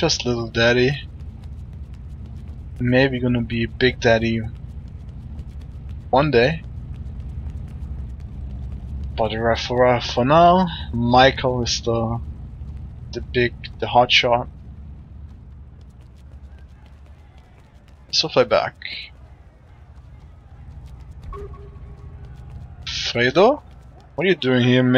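Quick footsteps run on pavement.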